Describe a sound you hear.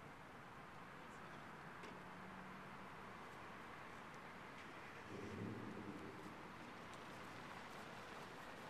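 Crows caw now and then outdoors.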